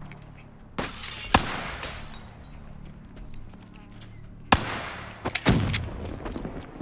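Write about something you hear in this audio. Gunshots and explosions bang loudly.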